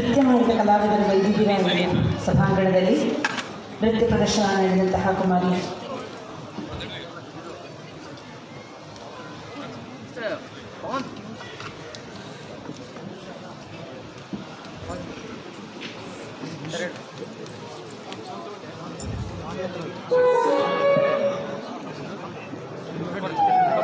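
A large crowd murmurs in the background.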